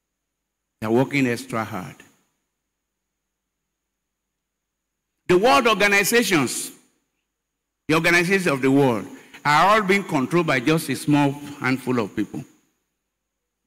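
An elderly man preaches with animation through a microphone, in short bursts with pauses.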